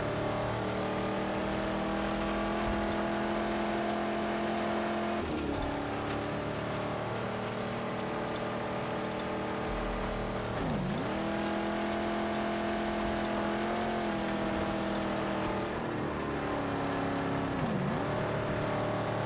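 Tyres crunch and hiss over sand and gravel.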